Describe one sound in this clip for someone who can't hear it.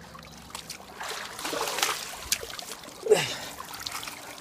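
Water splashes and drips as a man climbs out of a pool.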